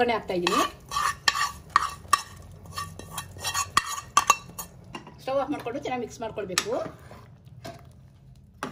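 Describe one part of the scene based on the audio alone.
Hot oil tempering sizzles and crackles as it is poured into a pot of stew.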